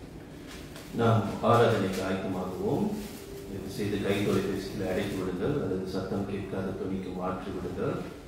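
A man speaks steadily into a microphone, heard through loudspeakers in an echoing room.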